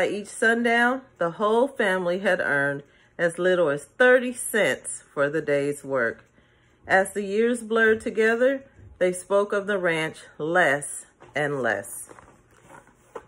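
A woman reads aloud close to a microphone with expression.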